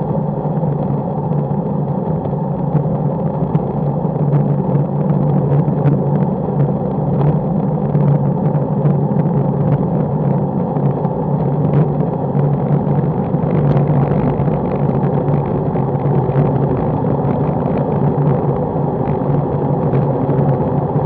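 Wind rushes and buffets steadily.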